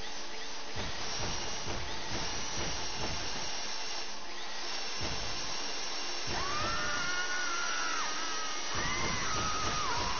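Metal squeals and grinds as a drill bit digs in.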